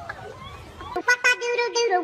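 A toy duck plays a tune.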